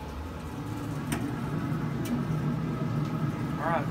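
A metal grill lid creaks open.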